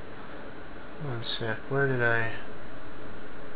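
A man speaks briefly and casually into a nearby microphone.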